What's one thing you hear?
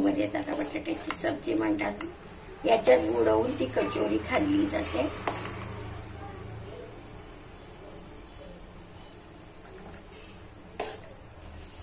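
A spoon scrapes and clinks against a metal pot.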